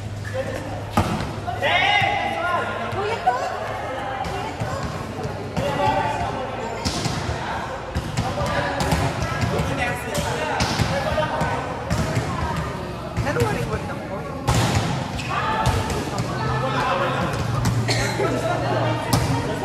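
A volleyball is struck with sharp slaps that echo.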